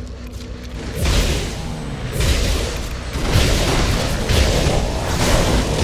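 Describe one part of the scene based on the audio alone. Fiery blasts whoosh and crackle in a fight.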